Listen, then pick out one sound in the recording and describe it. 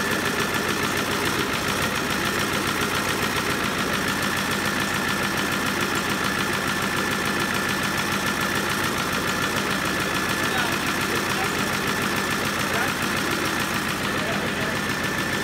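An engine runs loudly at a steady, fast idle, rattling and clattering.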